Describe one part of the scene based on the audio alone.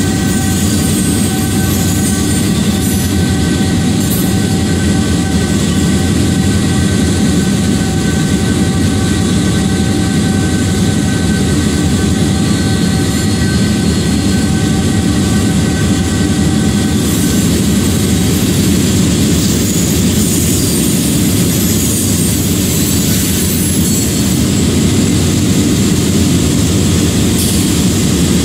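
Diesel locomotive engines rumble and drone steadily close by.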